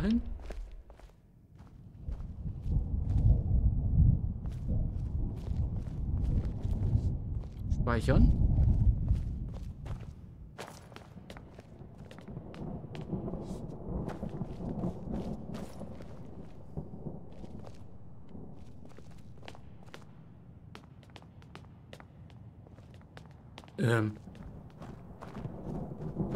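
Footsteps thud steadily over the ground.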